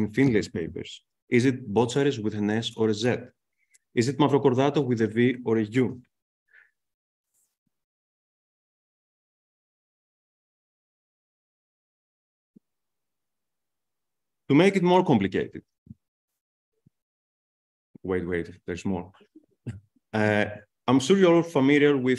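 A man speaks calmly through a microphone over an online call, pausing now and then.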